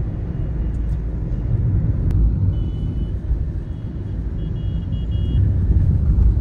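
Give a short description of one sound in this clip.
Vehicle horns beep in short bursts.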